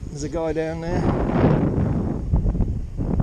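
Wind gusts across a close microphone.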